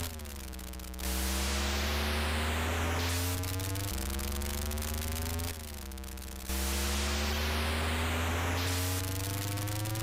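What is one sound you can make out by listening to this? A harsh hissing tyre screech sounds during drifts.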